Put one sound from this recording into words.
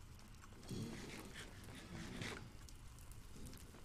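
A character chews and munches food with crunchy bites.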